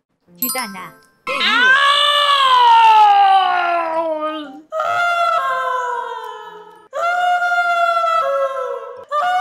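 A young woman sings long, wailing notes up close to a microphone.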